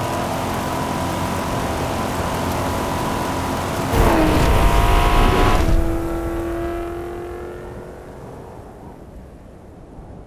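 Wind howls in a dust storm.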